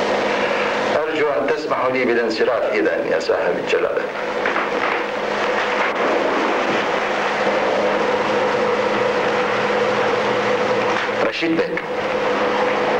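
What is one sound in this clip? An elderly man speaks calmly, heard through a faint, hissy old recording.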